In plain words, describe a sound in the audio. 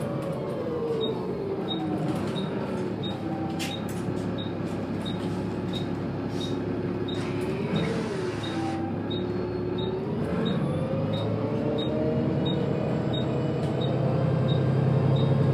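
A ticking indicator clicks steadily.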